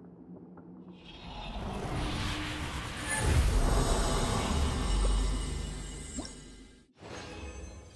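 A magical energy surge whooshes and rumbles, swelling loudly.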